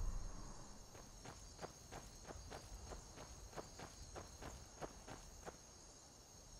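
Footsteps thud on a stone path at a steady running pace.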